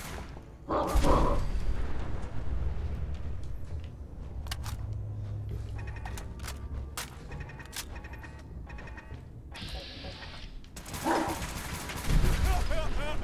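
A rifle fires with a loud, echoing boom.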